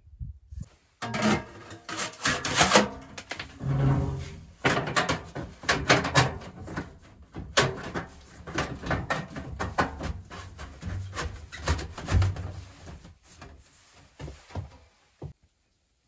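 Metal pipes clank and scrape as they are fitted together.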